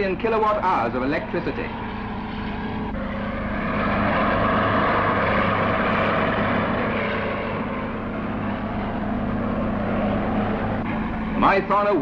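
A heavy diesel engine rumbles and growls.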